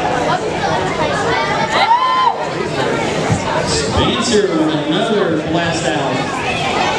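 A crowd of spectators chatters.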